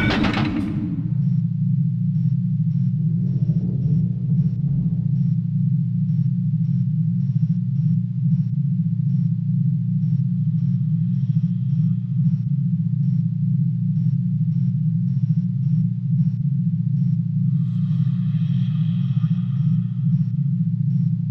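A lift hums steadily as it moves.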